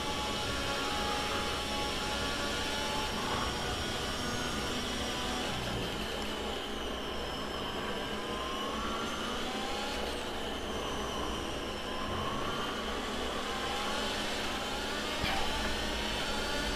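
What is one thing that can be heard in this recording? A racing car engine roars, revving up and dropping in pitch as it shifts gears.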